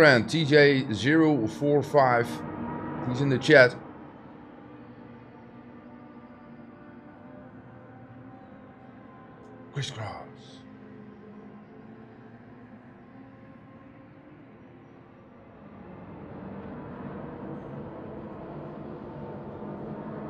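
A racing car engine hums steadily.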